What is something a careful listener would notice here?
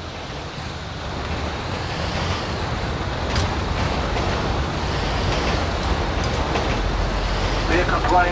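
A truck engine rumbles and revs as the truck drives off.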